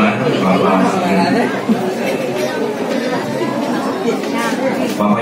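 A crowd of men and women chatter in a busy room.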